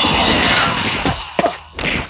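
Fists thump in a game brawl.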